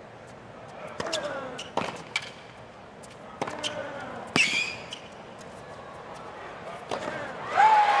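Tennis rackets strike a ball in a rally, echoing in a large stadium.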